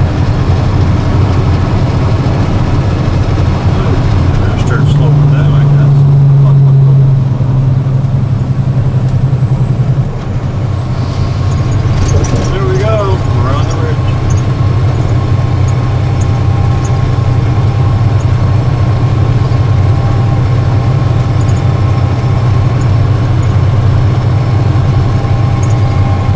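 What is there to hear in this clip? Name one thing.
A large vehicle's engine drones steadily from inside the cab.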